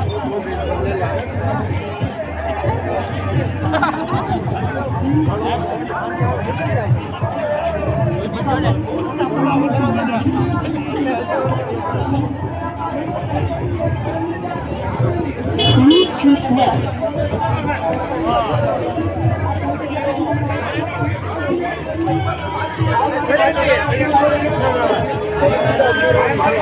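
A busy outdoor market crowd of men, women and children chatters all around.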